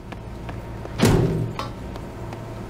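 A heavy metal door rumbles open.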